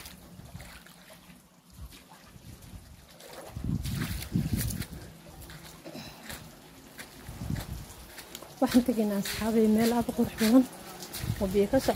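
Shallow water trickles softly over sand and stones.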